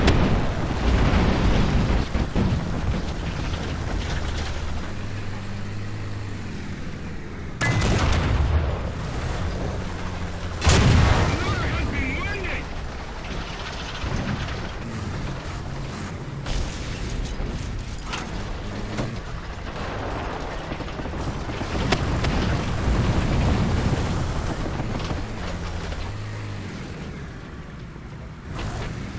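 A tank engine rumbles and its tracks clank steadily.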